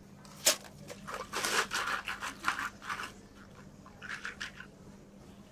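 Milk pours and splashes over ice in a plastic cup.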